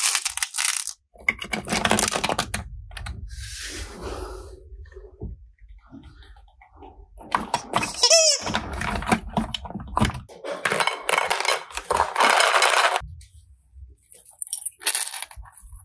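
Plastic toys clatter and knock together as a hand handles them.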